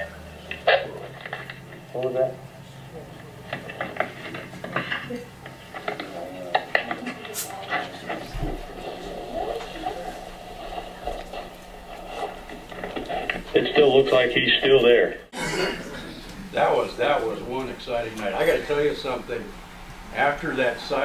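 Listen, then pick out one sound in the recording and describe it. A middle-aged man speaks to a room, heard slightly distant with room echo.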